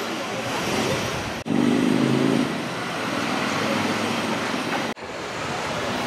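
Traffic rumbles along a city street.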